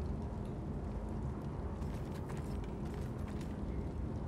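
Footsteps shuffle softly on a stone floor.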